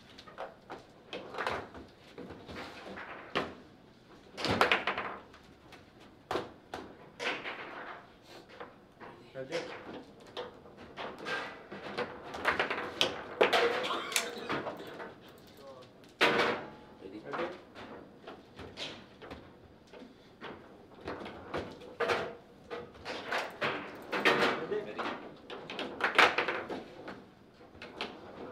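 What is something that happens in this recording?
Foosball rods clack and the ball knocks sharply against the table.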